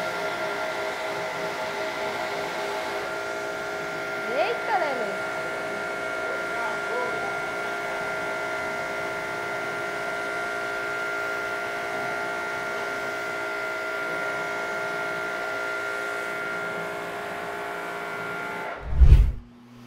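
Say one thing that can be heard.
A pressure washer motor whines steadily.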